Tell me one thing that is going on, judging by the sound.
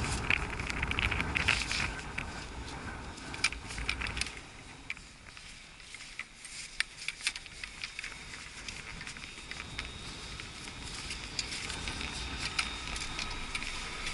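A chairlift rattles and clicks as it runs along its cable.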